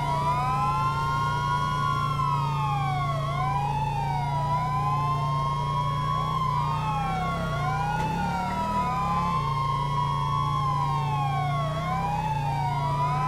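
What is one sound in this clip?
A police siren wails steadily, rising and falling over and over.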